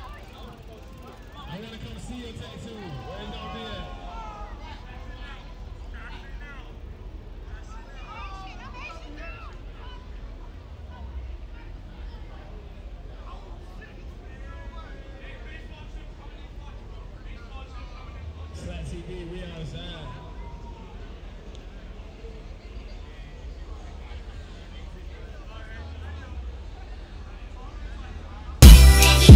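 A crowd of young men and women talks and calls out nearby outdoors.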